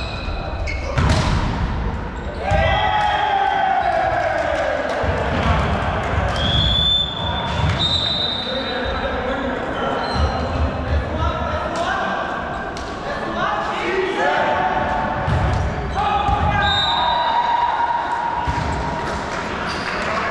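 A volleyball is struck with loud smacks that echo through a large hall.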